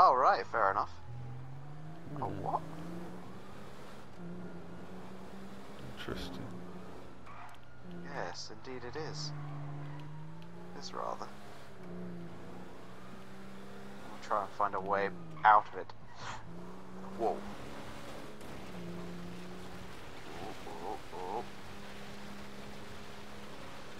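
A car engine hums steadily, its pitch rising and falling as it speeds up and slows.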